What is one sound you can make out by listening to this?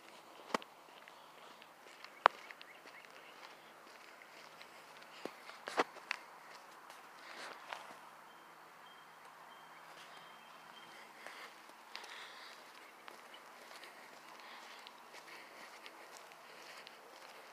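Footsteps crunch on a gravel path outdoors.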